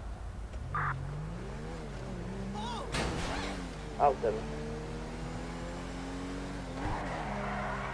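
A car engine revs as the car pulls away.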